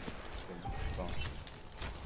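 A bow shot in a video game fires an arrow.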